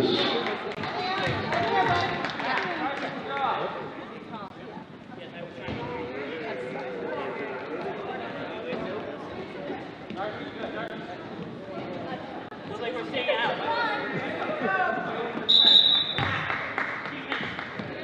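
A crowd of spectators chatters and cheers in an echoing gym.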